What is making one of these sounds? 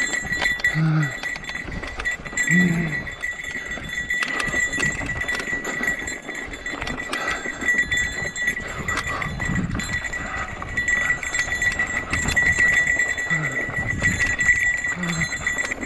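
Wind rushes across a microphone outdoors.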